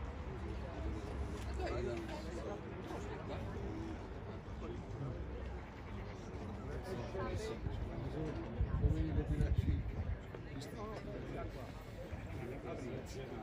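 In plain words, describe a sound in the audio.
Adult men talk calmly with each other outdoors, some distance away.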